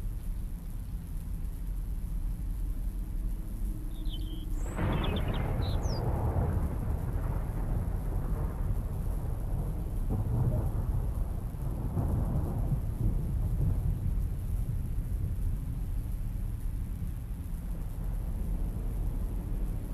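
Wind blows steadily outdoors through trees.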